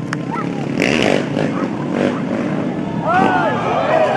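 A motorcycle crashes and skids across the pavement.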